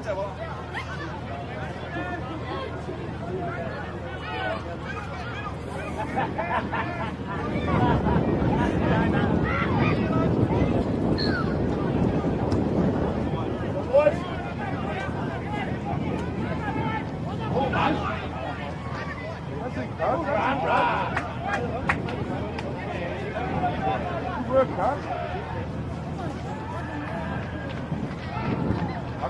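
Players shout to one another outdoors across an open field.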